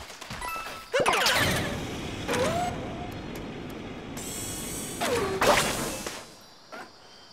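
A loud whoosh sweeps past as a cartoon character is shot from a cannon.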